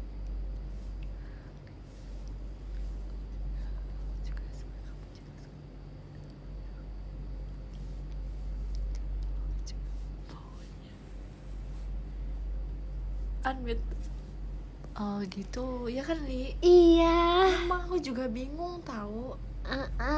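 Two young women chat with animation close to a phone microphone.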